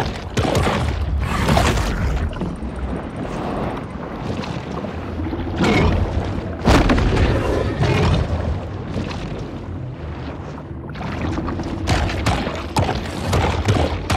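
A shark snaps its jaws and bites with sharp crunches.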